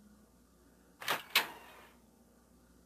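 A door creaks open slowly.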